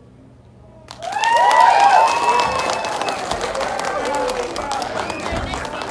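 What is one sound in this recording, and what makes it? A crowd of young people cheers and whoops.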